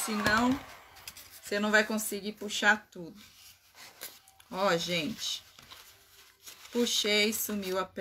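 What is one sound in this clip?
Plastic sheeting crinkles in a woman's hands.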